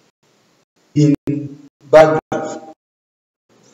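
A young man speaks clearly and deliberately, close by.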